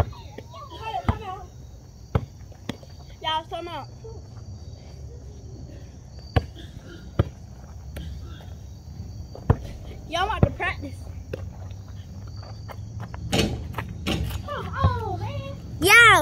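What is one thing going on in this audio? Children talk and shout outdoors.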